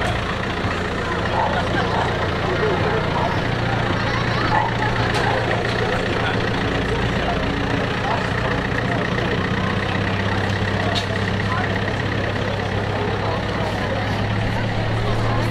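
A vehicle engine hums steadily as it rolls slowly past.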